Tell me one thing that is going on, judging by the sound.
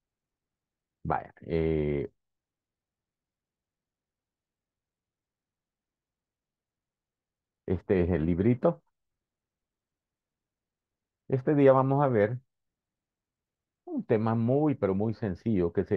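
A middle-aged man speaks calmly over an online call, in short phrases with pauses.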